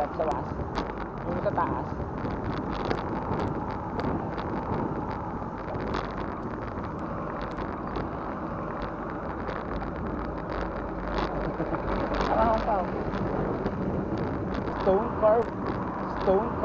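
Wind rumbles steadily against a moving bicycle.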